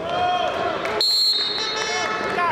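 A referee blows a short, sharp whistle.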